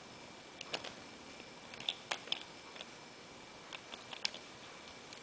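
Small plastic parts of a toy truck click and rattle as a hand turns it.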